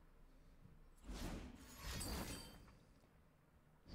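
A video game plays a bright magical burst sound effect.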